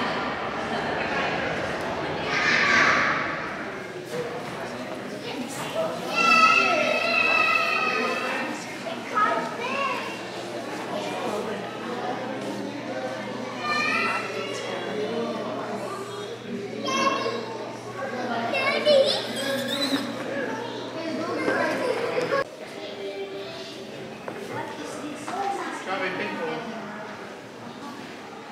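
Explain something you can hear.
A crowd of visitors chatters throughout a large echoing hall.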